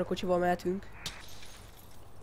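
Glass shatters as a car window is smashed.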